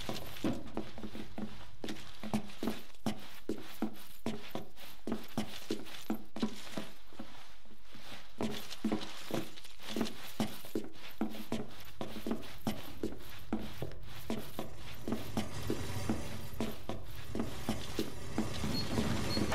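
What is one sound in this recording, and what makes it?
Quick footsteps thud on a hard floor as a man runs.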